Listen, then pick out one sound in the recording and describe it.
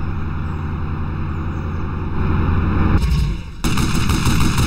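A tank engine rumbles.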